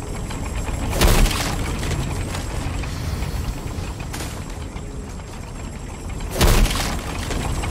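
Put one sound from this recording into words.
A wooden chest bursts apart with a loud crash.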